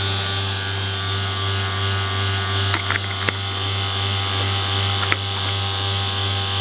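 An electrical device hums and hisses steadily.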